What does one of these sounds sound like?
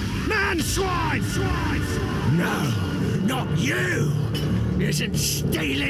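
A monstrous creature growls and snarls.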